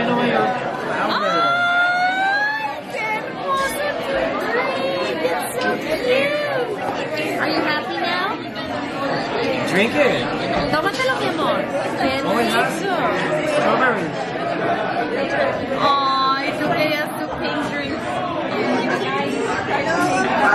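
A young girl talks and laughs close by.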